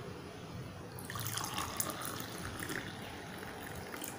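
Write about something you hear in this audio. Liquid pours and splashes into a glass.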